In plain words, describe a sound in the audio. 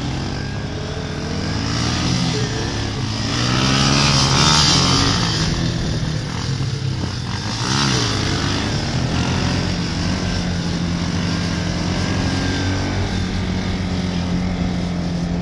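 A quad bike engine revs and roars up close, rising and falling in pitch.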